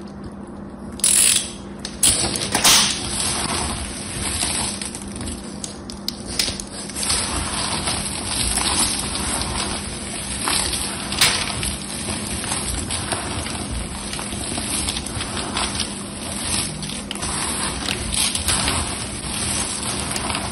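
Dry soap flakes crunch and rustle as hands crush and stir them.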